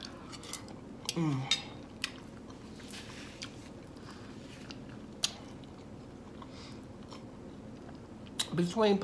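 Soft chewing and mouth sounds come close up.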